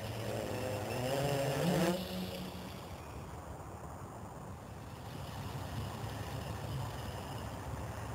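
A drone's propellers buzz loudly up close, rising in pitch and then fading as the drone flies off.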